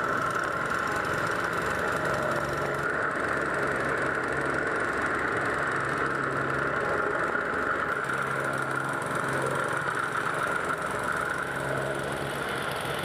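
A plate compactor rattles and thumps hard against paving stones.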